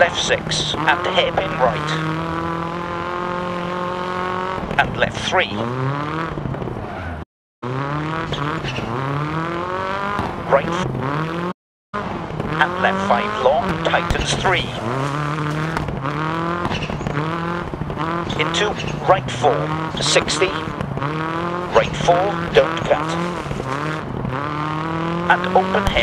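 A rally car engine revs hard and shifts through the gears.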